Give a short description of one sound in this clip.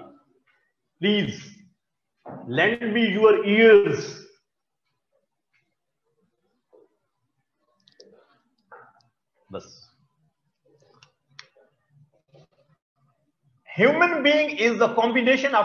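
A man speaks in pauses, lecturing in a calm, clear voice.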